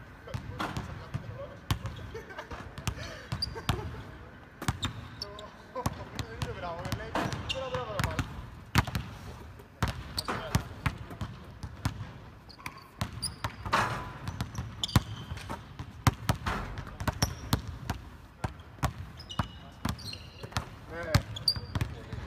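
Basketballs bounce on a hard floor, echoing in a large hall.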